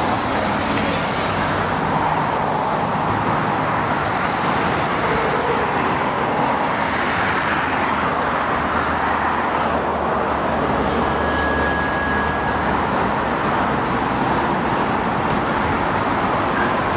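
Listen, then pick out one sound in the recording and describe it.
Traffic rushes past steadily nearby.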